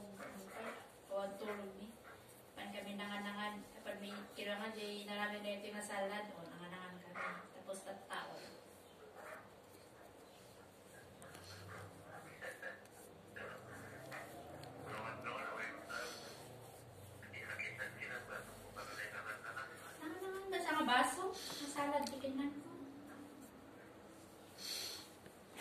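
A woman talks calmly close to a microphone.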